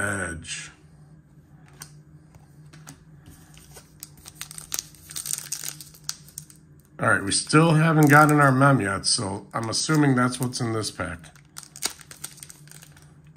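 Trading cards rustle and click as they are shuffled by hand.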